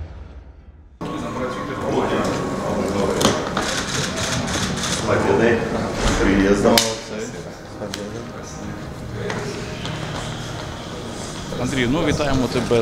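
A suitcase rolls across a hard floor.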